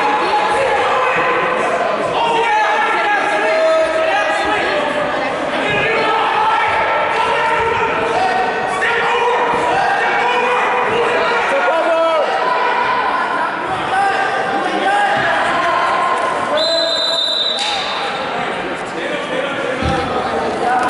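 A crowd of spectators shouts and cheers in an echoing gym.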